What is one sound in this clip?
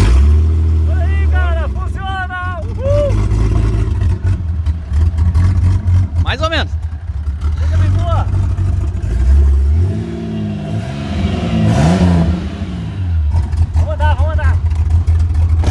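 A car engine revs up briefly several times.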